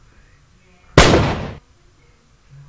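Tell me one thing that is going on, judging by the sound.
A handgun fires a single loud shot.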